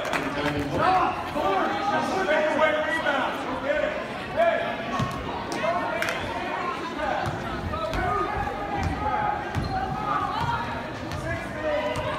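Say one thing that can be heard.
A crowd of spectators talks and cheers throughout a large echoing gym.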